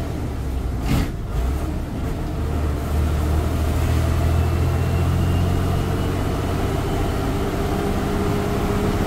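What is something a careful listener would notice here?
A bus rattles and creaks as it rolls along the road.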